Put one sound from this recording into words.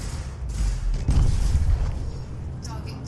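A ship explodes with a deep, rumbling boom.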